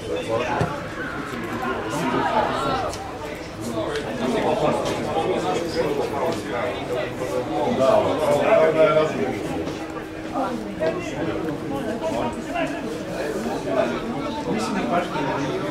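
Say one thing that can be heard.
Football players shout to one another across an open field.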